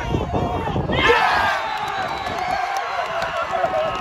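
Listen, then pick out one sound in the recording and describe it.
A crowd cheers loudly outdoors.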